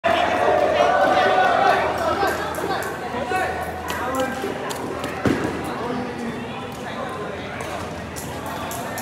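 A crowd of young adults chatters in a large echoing hall.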